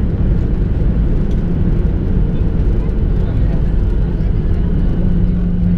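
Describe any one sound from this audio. A jet engine roars loudly and steadily.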